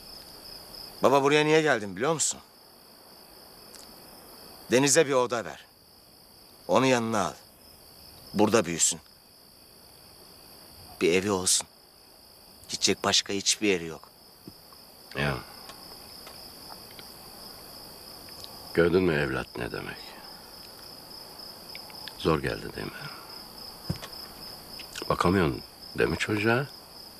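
An elderly man speaks emotionally, in short phrases.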